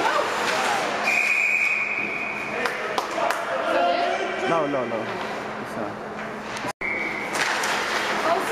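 A referee's whistle blows sharply in an echoing rink.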